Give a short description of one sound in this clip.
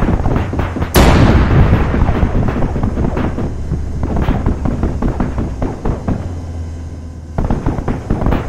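An engine drones with a deep, steady hum.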